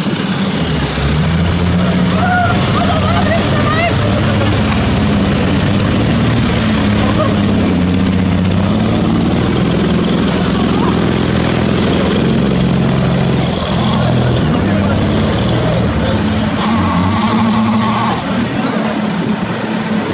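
A jeep engine rumbles steadily while driving through a river.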